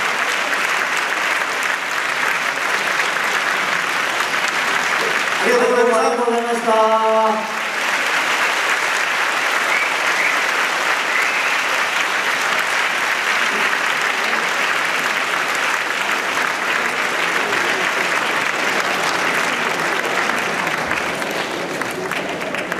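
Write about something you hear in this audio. An audience applauds steadily in a large hall.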